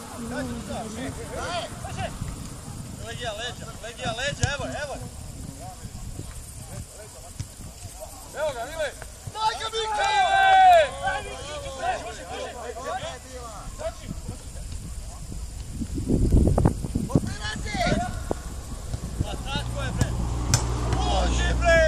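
Young men shout and call to each other across an open field, some way off.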